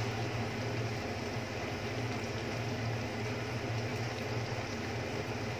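Food sizzles and bubbles steadily in a hot pan.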